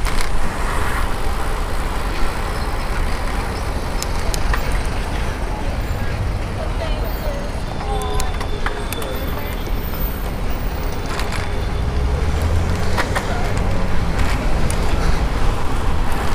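City traffic rumbles and hums nearby.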